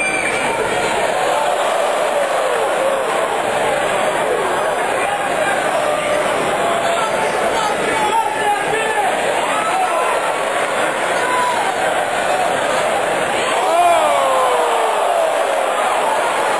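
Men in the crowd yell out close by.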